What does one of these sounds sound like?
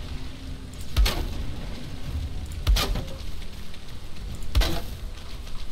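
Wooden stakes thud sharply into place a few times.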